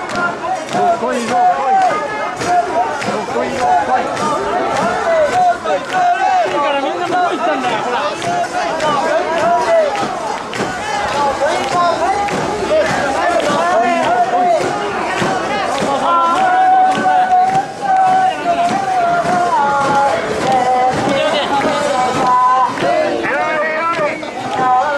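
A crowd of men chant loudly in unison, close by.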